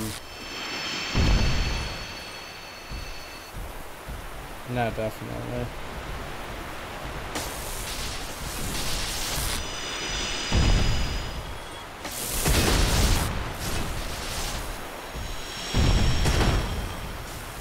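A crystal creature shatters with a glassy crackle.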